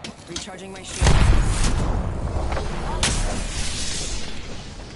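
A shield cell charges up with a whirring hum.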